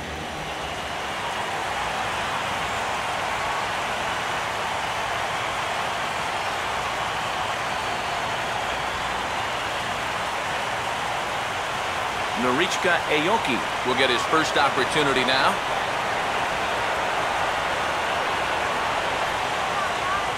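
A large crowd murmurs and cheers in a stadium.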